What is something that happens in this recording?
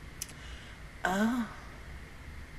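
A young woman speaks briefly and softly close to a microphone.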